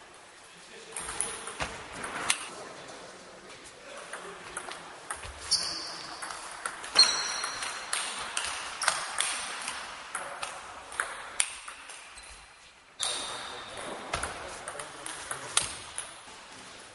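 A table tennis ball clicks back and forth off paddles and a table, echoing in a large hall.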